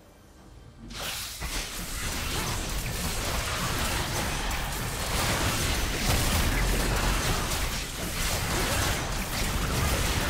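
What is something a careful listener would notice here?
Magic blasts crackle and boom during a fight.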